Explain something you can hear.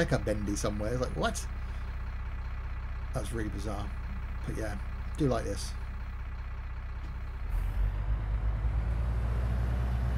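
A bus engine hums steadily at low pitch, growing louder as the bus pulls away.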